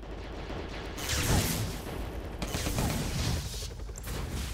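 Loud blasts rumble and roar.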